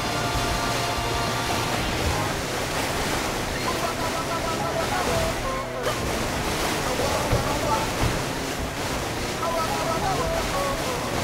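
A jet ski engine roars steadily.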